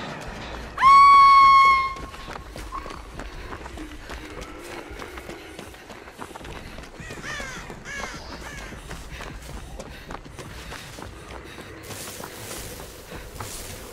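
Footsteps run through tall grass.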